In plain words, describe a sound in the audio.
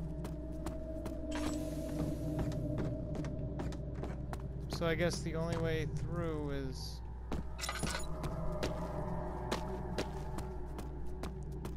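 Footsteps tread slowly on stone.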